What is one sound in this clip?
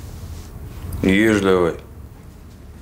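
A young boy speaks softly nearby.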